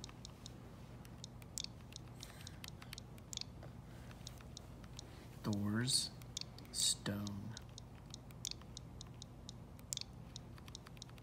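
Buttons on a small game controller click repeatedly.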